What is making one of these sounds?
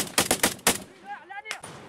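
A rifle fires several sharp shots close by.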